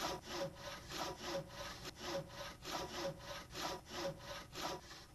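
A hand saw cuts through wood in quick, rhythmic strokes.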